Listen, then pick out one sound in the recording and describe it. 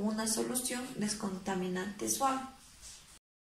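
A young woman speaks clearly and calmly into a nearby microphone.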